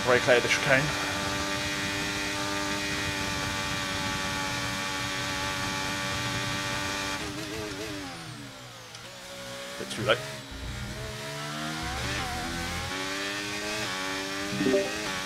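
A racing car engine whines at high revs, dropping in pitch as it slows and rising again as it speeds up.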